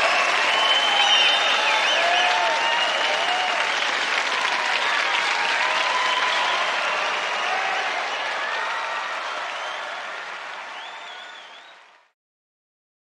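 A large crowd cheers and applauds, then fades away.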